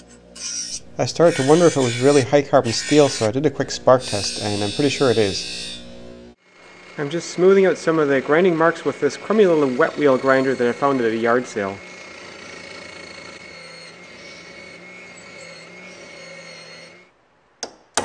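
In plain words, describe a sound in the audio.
An electric grinder motor hums steadily.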